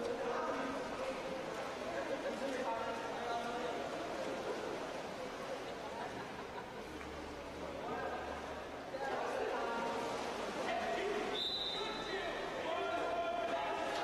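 Water splashes steadily in a large echoing hall.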